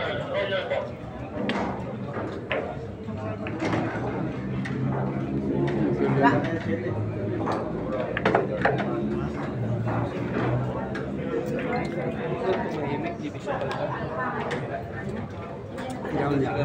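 A crowd of young men chatters in the background.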